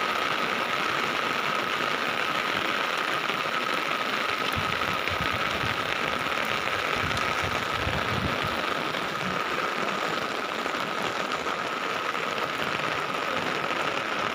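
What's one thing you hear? Heavy rain pours steadily, drumming on an umbrella close by.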